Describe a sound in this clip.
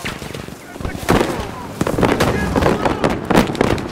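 Explosions boom loudly nearby.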